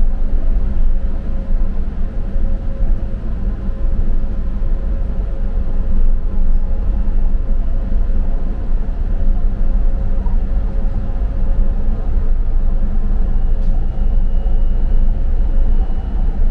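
A train rumbles steadily along the rails with a low hum.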